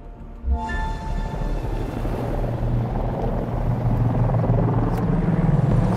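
A helicopter's rotor thumps and whirs, growing louder.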